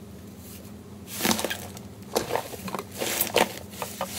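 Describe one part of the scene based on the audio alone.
Hands press and squeeze a soft, sticky mass that crackles and pops.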